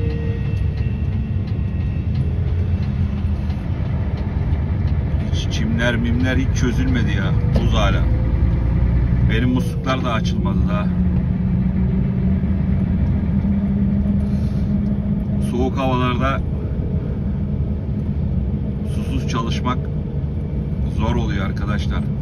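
Tyres roll on the road with a low, steady rumble.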